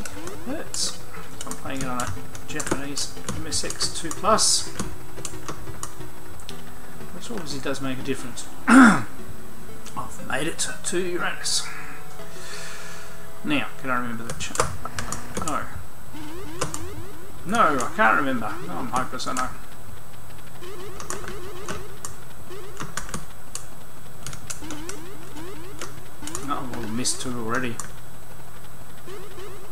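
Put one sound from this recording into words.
An 8-bit computer game plays a bleeping chiptune melody.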